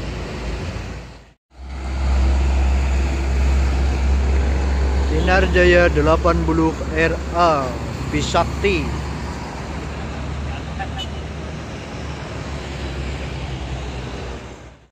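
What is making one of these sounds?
Motorcycles and cars pass along a road.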